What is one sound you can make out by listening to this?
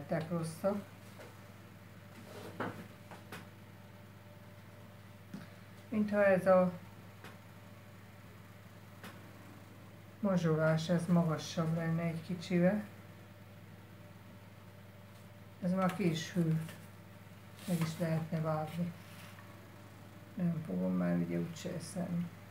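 A woman talks calmly close by, in short bursts.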